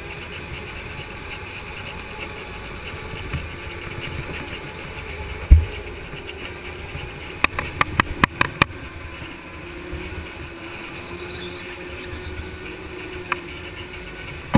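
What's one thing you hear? A go-kart engine drones steadily up close.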